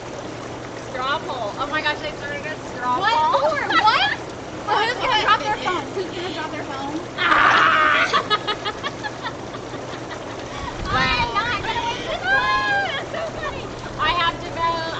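Young women talk and laugh loudly, close by.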